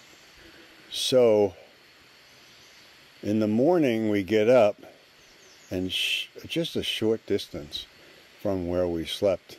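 An elderly man speaks calmly and close up, in short bursts with pauses.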